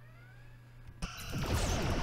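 A laser beam fires with a sharp zap.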